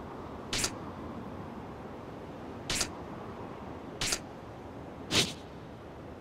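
A game menu ticks as the selection moves.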